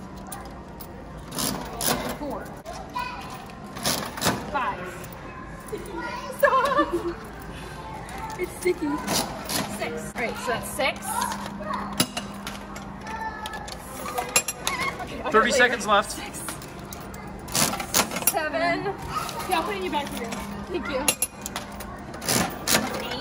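A gumball machine's metal handle clicks and rattles as it is turned.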